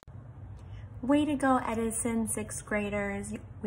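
A young woman speaks with animation through a phone microphone.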